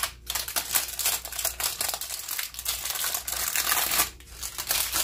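Parchment paper crinkles and rustles as it is pulled.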